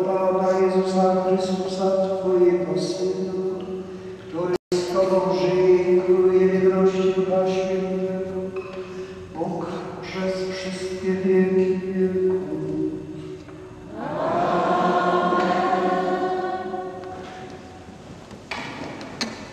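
A congregation sings slowly in a large echoing hall.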